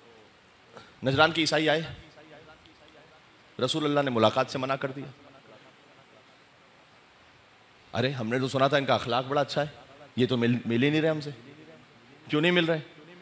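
A man speaks with emotion into a microphone, heard through loudspeakers, in bursts with pauses.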